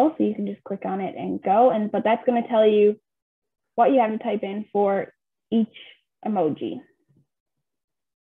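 A young woman speaks calmly and clearly through a microphone, as if on an online call.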